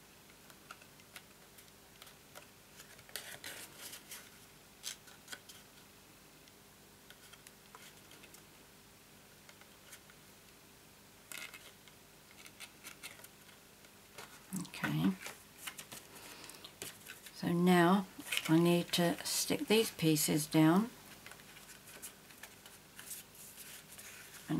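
Stiff card stock rustles and creases as hands fold it into a box.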